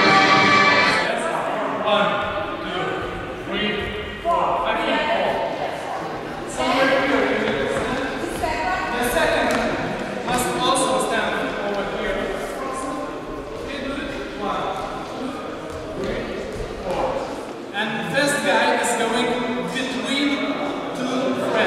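A young man speaks with animation in a large echoing hall.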